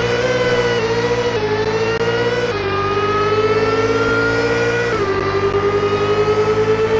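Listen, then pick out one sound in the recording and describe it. A racing game's car engine roars at high revs, shifting up through the gears as it accelerates.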